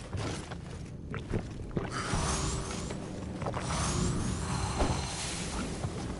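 Heavy wooden doors creak as they are pushed open.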